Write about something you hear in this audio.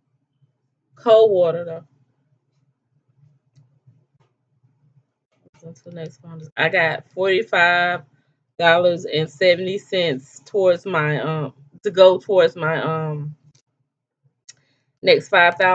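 A middle-aged woman talks calmly and closely into a microphone, with pauses.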